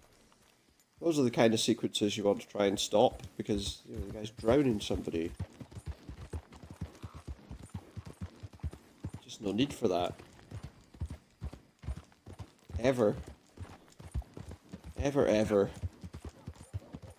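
Horse hooves thud steadily on a dirt track.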